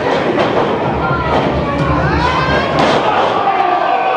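A body slams onto a wrestling ring mat with a heavy thud.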